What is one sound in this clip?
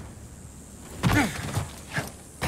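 A heavy thud lands on the ground.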